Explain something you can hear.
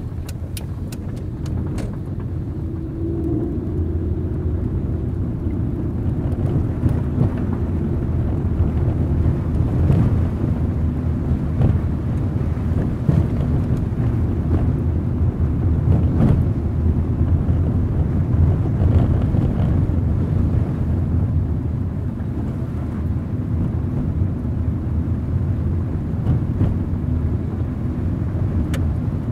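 Tyres rumble and splash over a wet, bumpy road.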